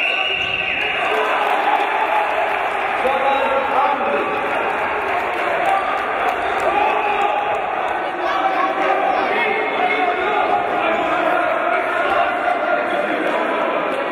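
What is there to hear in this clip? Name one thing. A crowd murmurs and shouts throughout a large echoing hall.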